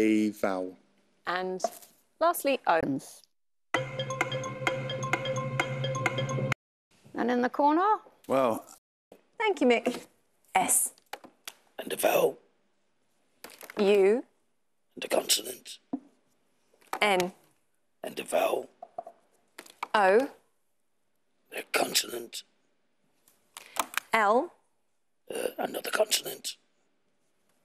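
A young woman speaks short, clear words into a microphone, with pauses between them.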